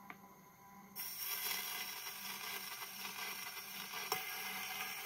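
A gramophone needle hisses and crackles on a spinning record.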